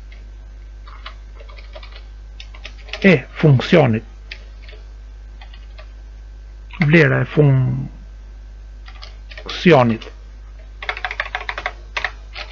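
Keys clatter on a computer keyboard in quick bursts.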